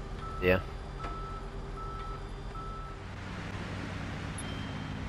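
A car engine hums and revs as the car pulls away.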